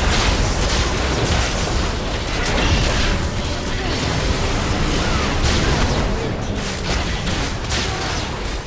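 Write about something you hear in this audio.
Game spell effects crackle and burst in a fight.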